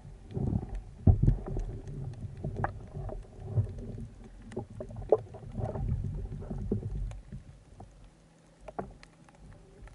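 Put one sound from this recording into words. Small clicks and knocks sound underwater.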